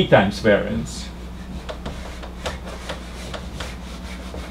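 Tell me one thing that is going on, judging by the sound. A cloth wipes across a whiteboard.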